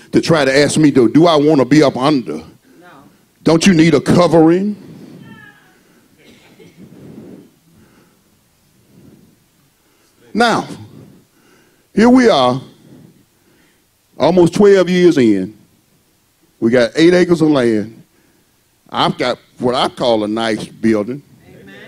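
A man preaches with animation through a microphone, in bursts with pauses, heard in an echoing room.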